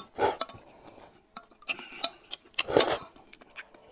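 A woman sips and slurps from a spoon.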